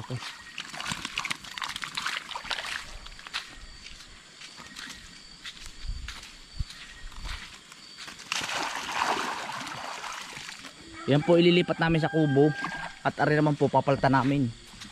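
Fish splash in shallow pond water.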